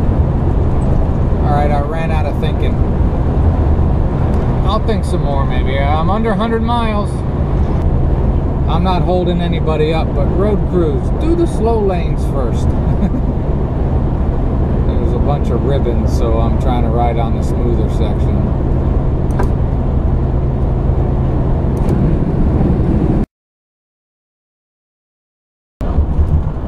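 Car tyres rumble steadily on the road at highway speed.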